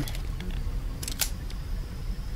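A crossbow clicks as it is reloaded.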